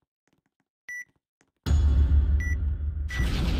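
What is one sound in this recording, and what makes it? Short electronic beeps tick off a countdown.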